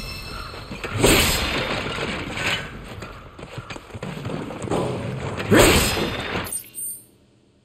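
Sparkling chimes ring out as an item is picked up.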